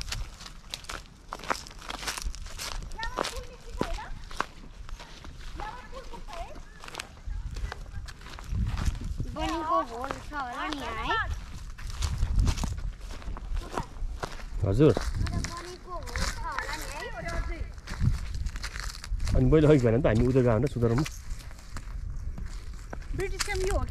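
Footsteps crunch on dry grass close by.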